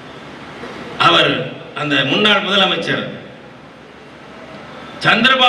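A middle-aged man speaks in bursts through a microphone and loudspeakers, with pauses between phrases.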